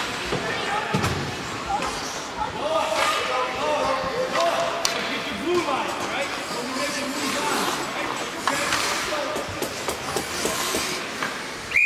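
Hockey sticks clack against the ice and puck.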